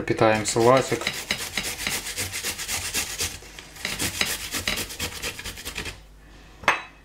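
Beetroot is grated quickly against a hand grater with a rhythmic rasping.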